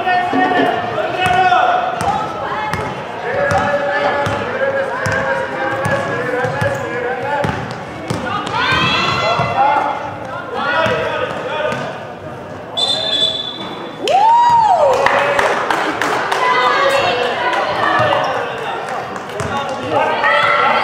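Young women call out to each other across an echoing hall.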